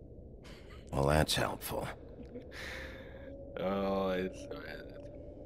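A man talks casually, close to a microphone.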